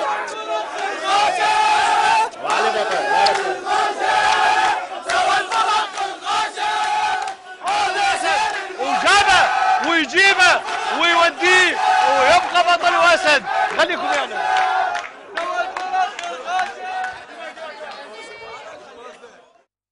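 A crowd of men cheer and shout loudly in an echoing hall.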